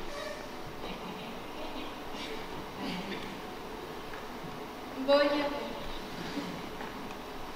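A young woman speaks expressively in a large hall, heard from a distance.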